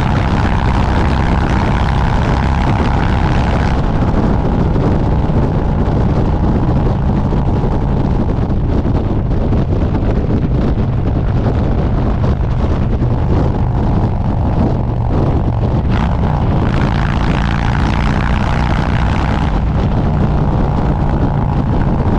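A motorcycle engine rumbles steadily while cruising on a highway.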